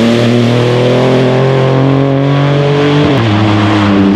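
A rally car engine roars loudly, its pitch dropping and rising as gears shift.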